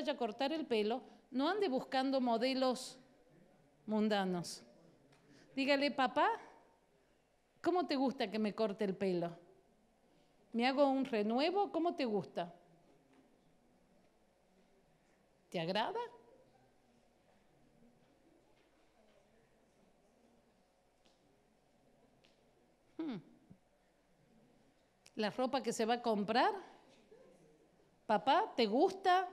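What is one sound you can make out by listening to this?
A middle-aged woman speaks with animation into a microphone, pausing often.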